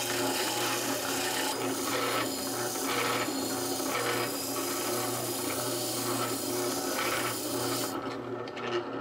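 A sanding drum grinds against a steel knife blank.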